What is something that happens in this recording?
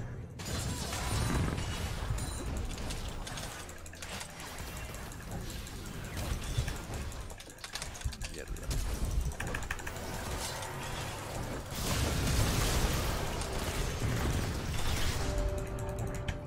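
Video game fighting effects whoosh and clash.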